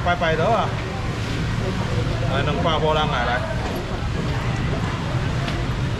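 A busy market crowd murmurs in the background.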